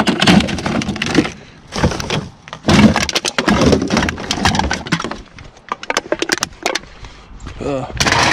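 Aluminium cans clink and rattle as they are handled.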